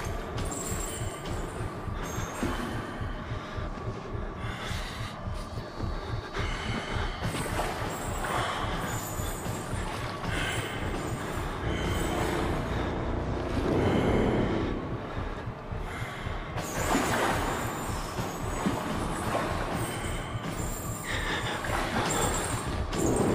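Footsteps splash and echo through a narrow tunnel.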